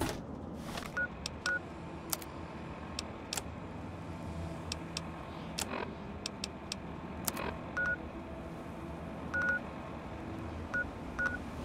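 Short electronic beeps and clicks sound from a handheld device.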